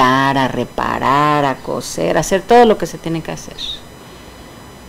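A middle-aged woman speaks softly and calmly, close to the microphone.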